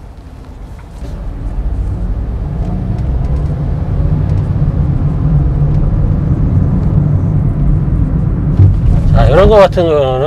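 A car engine hums low and steadily, growing louder as the car pulls away.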